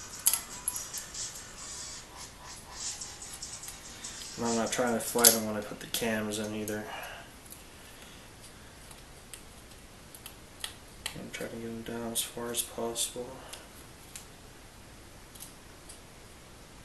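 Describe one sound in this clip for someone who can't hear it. Small metal parts click and clink against an engine block.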